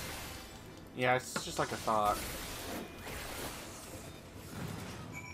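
Game spell effects whoosh and burst.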